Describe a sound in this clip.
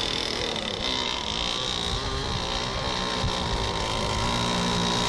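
A small motorboat engine whines at high pitch across the water.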